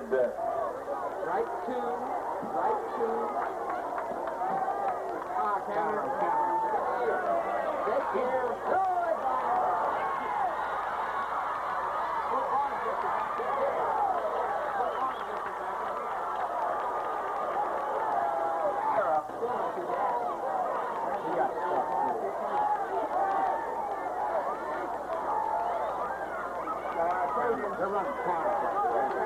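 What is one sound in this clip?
A large crowd of spectators cheers and shouts outdoors.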